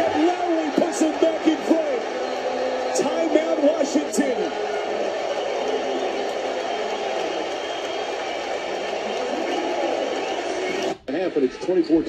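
A crowd cheers loudly over a broadcast.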